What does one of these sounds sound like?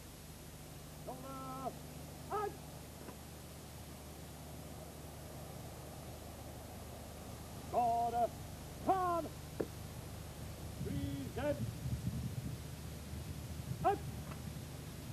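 A man speaks in short phrases nearby, outdoors.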